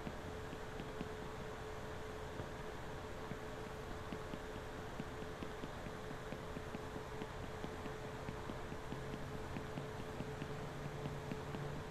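Quick footsteps clang on metal grating.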